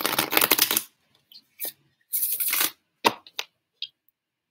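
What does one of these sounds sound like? Cards rustle and shuffle in hands.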